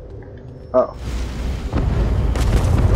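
A magical shimmer swells and hums.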